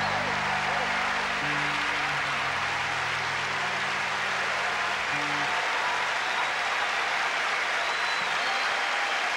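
A jazz band with guitars, drums and double bass plays on stage.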